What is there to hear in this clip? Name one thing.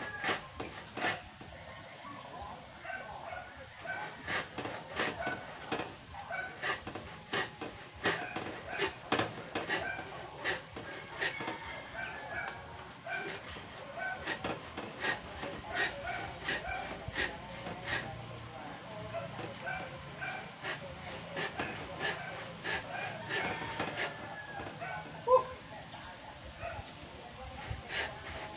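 Bamboo poles knock and clatter outdoors.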